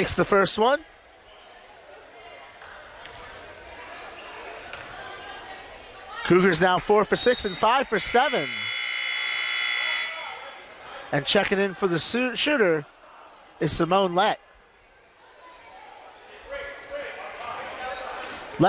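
A crowd murmurs in an echoing gym.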